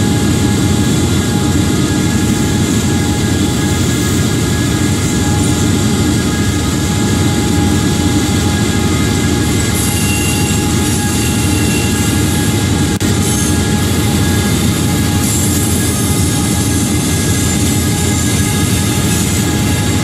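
A diesel locomotive engine drones steadily as a train rolls along.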